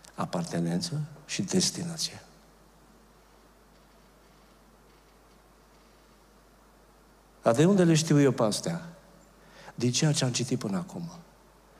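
An older man speaks with animation into a microphone, pausing between phrases.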